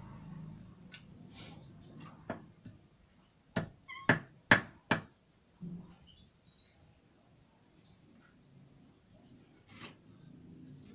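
A knife chops on a wooden board with sharp knocks.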